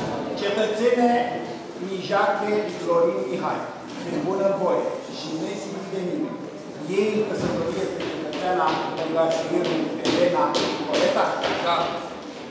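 A middle-aged man reads out calmly and formally, close by, in a room with some echo.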